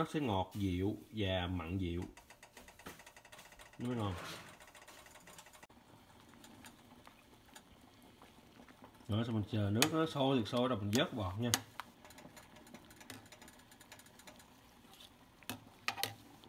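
Water bubbles at a rolling boil in a pot.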